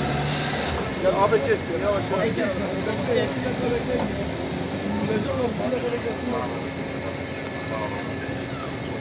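Men talk excitedly nearby outdoors.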